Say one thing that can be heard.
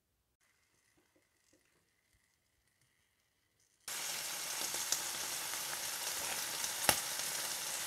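A metal spoon scrapes and clinks in a pan.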